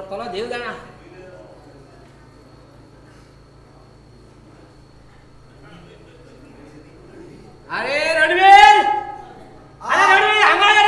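A man speaks expressively on a stage, heard through a microphone in a hall.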